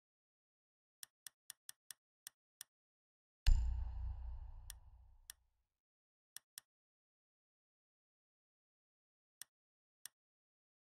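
Short soft clicks sound now and then as menu options are picked.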